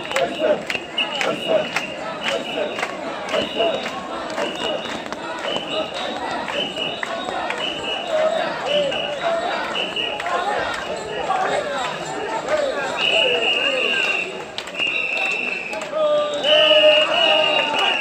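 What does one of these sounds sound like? Whistles blow in short repeated blasts.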